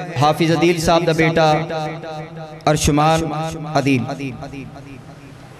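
A young man speaks loudly and with feeling into a microphone, heard through loudspeakers in an echoing room.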